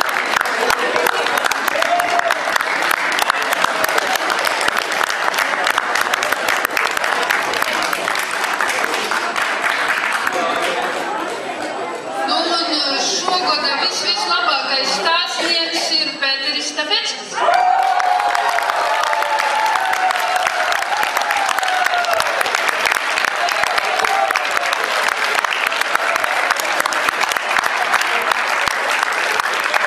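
A large crowd applauds loudly in an echoing hall.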